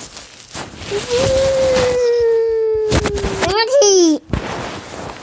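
A small child squeals loudly and shrilly close by, the pitch wavering and then dropping.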